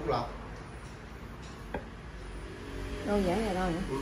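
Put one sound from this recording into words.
A porcelain vase is set down on a hard surface with a dull knock.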